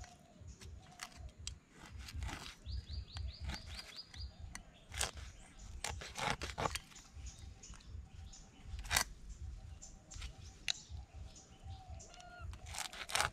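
A knife scrapes scales off a fish in short, quick strokes.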